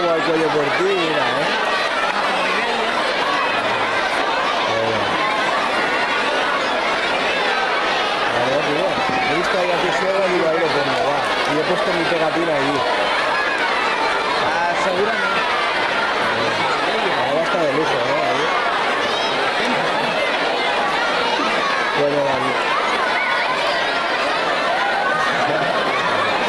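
A large crowd of children and adults chatters and shouts in a big echoing hall.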